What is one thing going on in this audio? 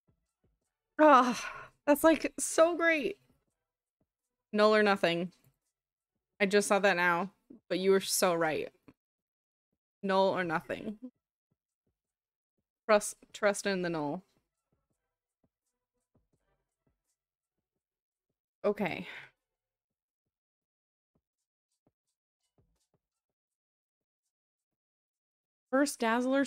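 A woman talks with animation into a close microphone, in short bursts with pauses.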